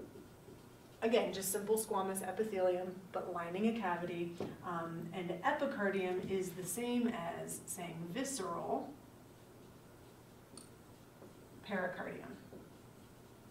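A woman speaks calmly and clearly.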